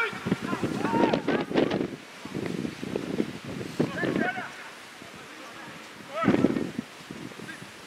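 Male football players shout calls to each other at a distance across an open outdoor pitch.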